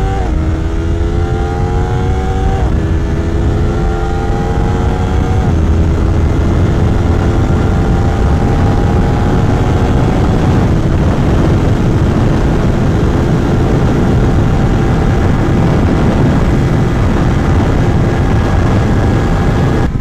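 Wind rushes loudly past the rider at speed.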